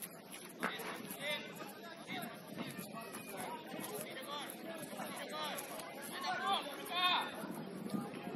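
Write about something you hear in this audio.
Children shout and call out across an open football pitch outdoors.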